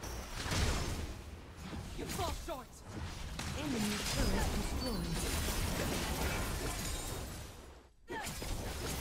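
Game hits land with sharp thuds.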